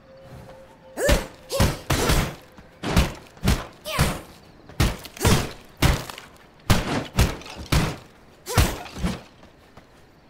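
A game character fights a skeleton with clashing blows.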